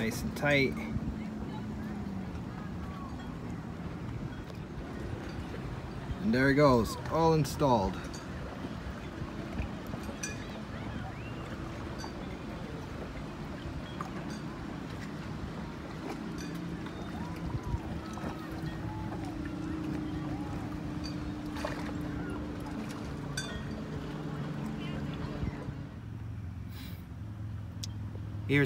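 Water laps against a boat hull.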